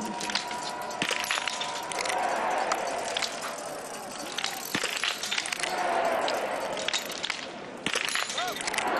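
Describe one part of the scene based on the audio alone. A rifle fires single sharp shots at a steady pace.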